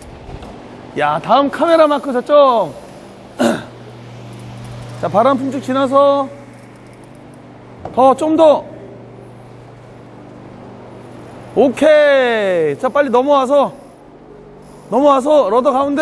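A man speaks with animation nearby, in short bursts.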